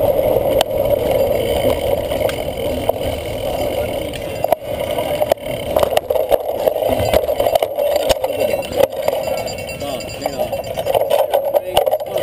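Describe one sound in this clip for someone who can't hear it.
A cyclocross bike rattles and clatters over bumpy ground.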